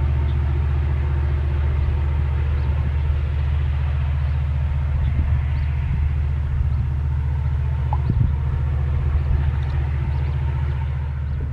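A diesel-electric freight locomotive rumbles in the distance, working hard up a steep grade with a heavy train.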